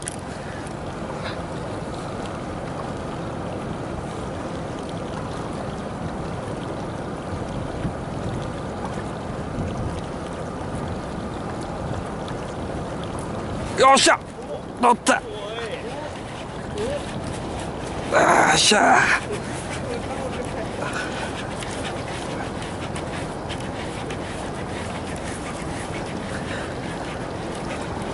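Wind rushes steadily over open water.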